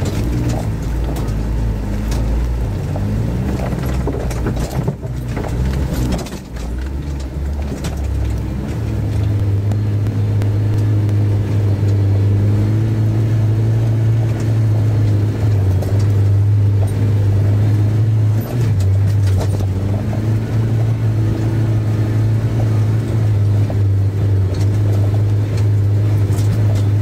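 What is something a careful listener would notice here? An engine hums and strains steadily close by.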